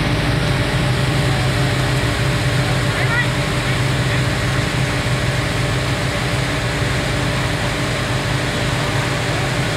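A truck engine idles nearby with a steady low hum.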